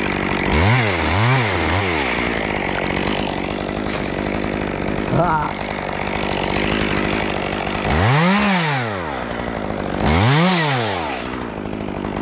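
A chainsaw revs up and down sharply several times.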